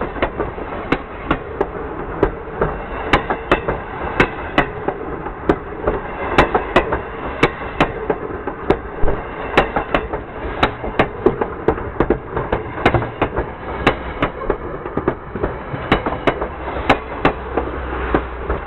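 A train rumbles by overhead at close range.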